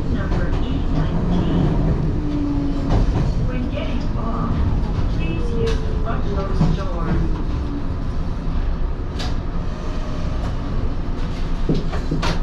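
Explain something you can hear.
A train rumbles along the tracks and slows to a stop.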